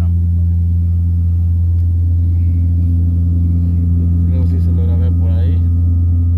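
An airplane engine drones loudly and steadily.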